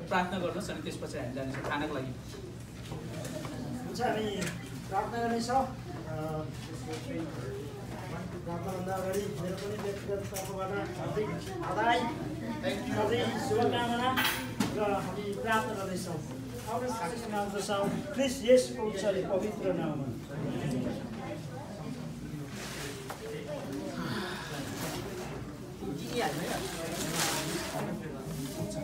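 A man speaks aloud to a gathered group.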